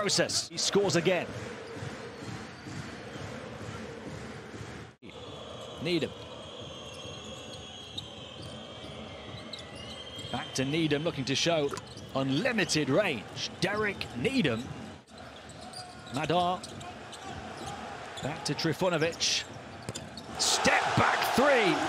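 A large crowd murmurs and cheers.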